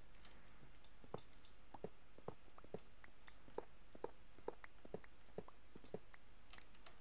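A pickaxe knocks against stone in quick, even blows.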